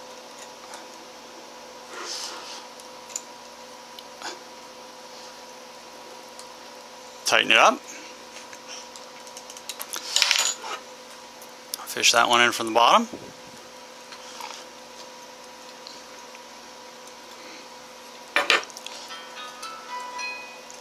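Metal parts clink and scrape as hands assemble a lamp fitting.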